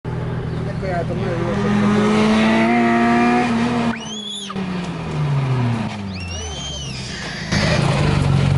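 A car engine revs loudly as a car speeds past close by.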